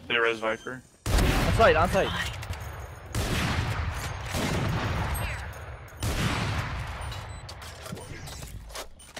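A rifle fires loudly.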